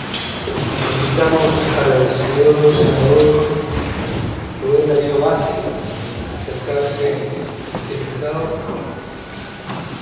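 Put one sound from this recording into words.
A man speaks formally through a microphone in a large echoing hall.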